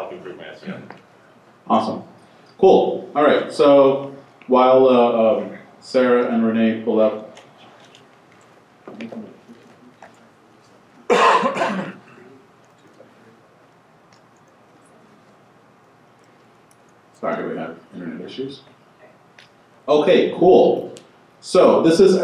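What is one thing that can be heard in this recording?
A man speaks through a microphone in a large room, presenting calmly with pauses.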